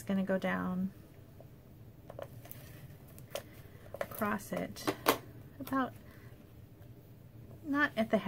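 Paper rustles and taps softly as hands handle it.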